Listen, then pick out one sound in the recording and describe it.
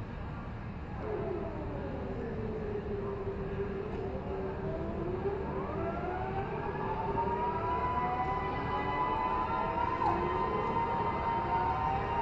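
Electric kart motors whine and rise in pitch as karts pull away.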